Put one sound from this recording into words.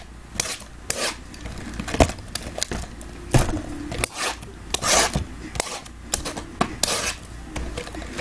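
Plastic wrapping crinkles and tears as a box is opened.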